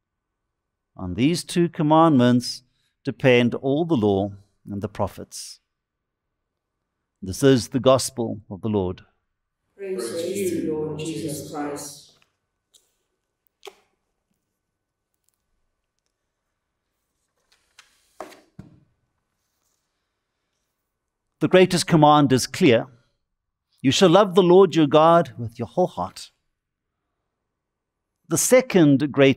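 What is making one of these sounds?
An elderly man speaks calmly and clearly into a microphone, with long pauses.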